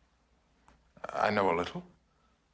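A middle-aged man answers calmly.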